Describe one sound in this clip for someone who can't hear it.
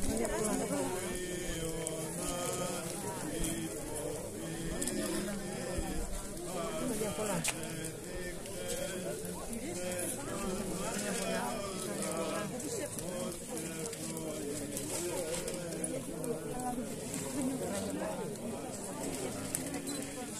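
A crowd of men and women chatter outdoors all around.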